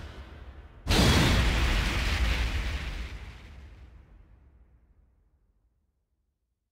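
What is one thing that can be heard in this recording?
A loud fiery blast bursts out and slowly fades away.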